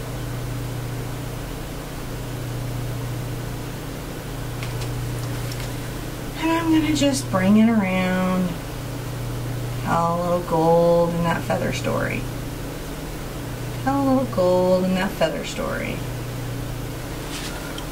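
A paintbrush softly brushes across a canvas.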